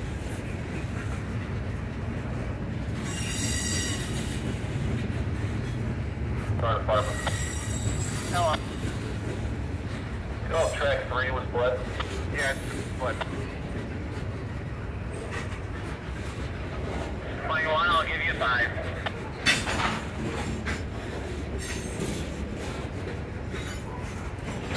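Steel wheels clack over rail joints.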